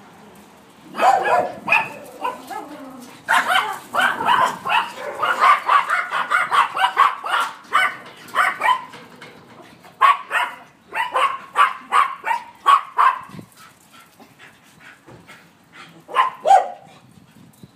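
Small Yorkshire terriers yap and bark excitedly while playing.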